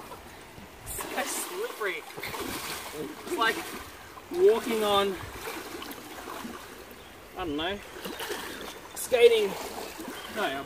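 Water splashes as a man wades through a shallow river.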